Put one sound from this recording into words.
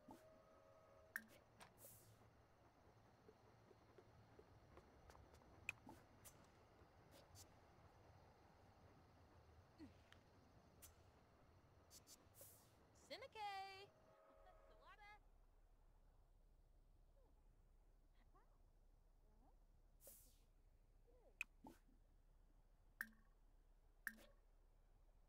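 Soft game interface clicks and blips sound as menu options are chosen.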